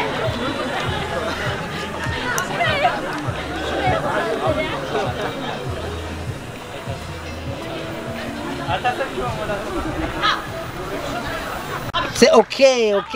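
A crowd of young people chatters outdoors.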